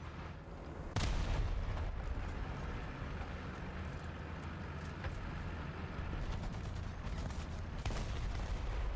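A tank cannon fires with a loud blast.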